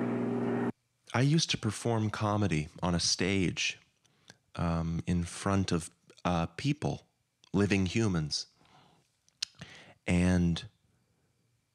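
A young man speaks with animation into a microphone, close by.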